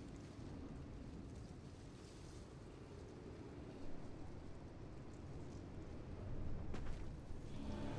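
A tornado roars with a deep, rushing wind.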